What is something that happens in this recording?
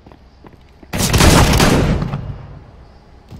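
A gun fires a loud burst.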